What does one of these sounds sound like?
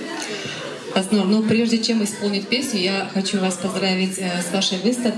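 A woman speaks into a microphone in a lively voice.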